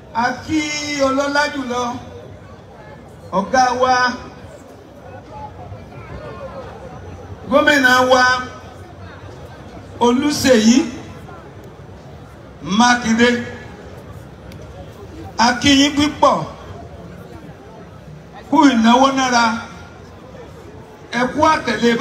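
A man chants loudly in short phrases with pauses between them.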